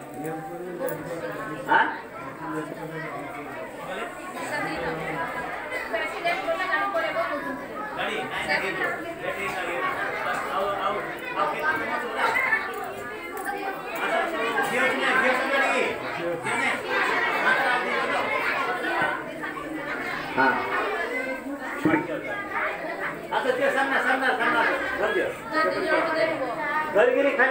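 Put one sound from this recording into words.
Several people murmur and talk nearby.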